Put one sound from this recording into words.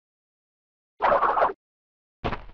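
A short springy jump sound plays.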